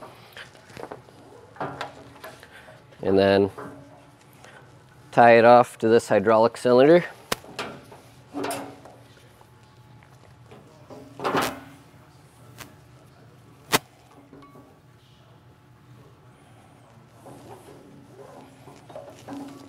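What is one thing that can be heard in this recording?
Plastic tubing knocks and rattles against metal.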